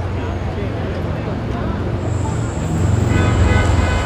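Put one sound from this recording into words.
A bus engine rumbles as the bus drives past.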